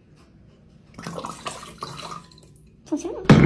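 Water pours into a glass bowl.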